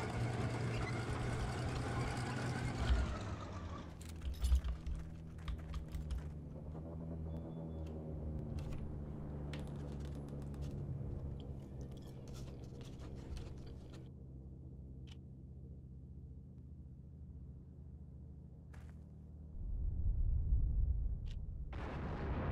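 A tank engine idles with a steady low rumble.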